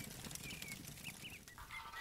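A wood fire crackles.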